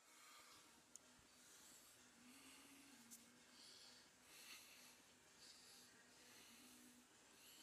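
A man talks quietly and close up, as if into a phone.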